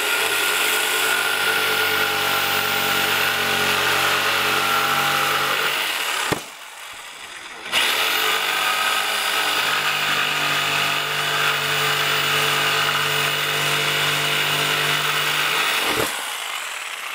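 An electric jigsaw buzzes loudly as it cuts through wood, pausing briefly.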